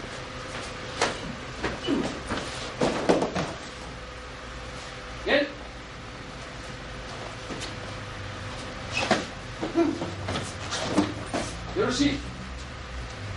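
A man shouts sharply while striking.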